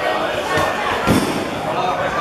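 A football is kicked hard with a dull thump.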